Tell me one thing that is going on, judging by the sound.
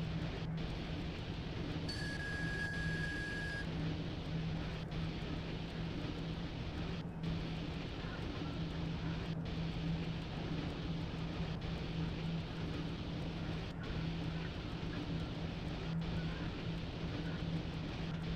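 A locomotive's engine hums steadily.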